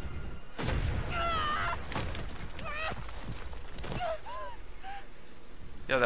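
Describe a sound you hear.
A young woman groans and whimpers in pain.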